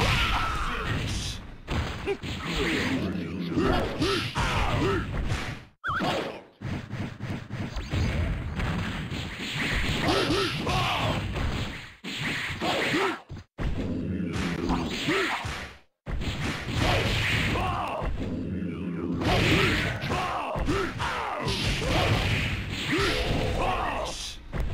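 Fast electronic game music plays throughout.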